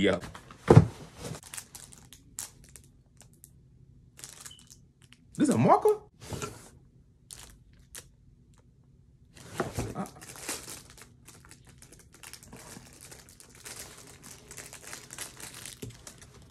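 Cardboard rustles as a box is handled.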